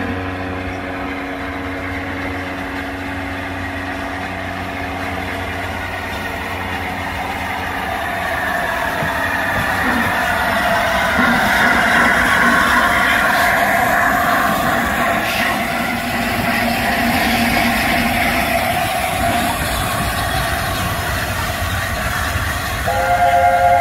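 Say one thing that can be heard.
A steam locomotive approaches and roars past close by, growing louder.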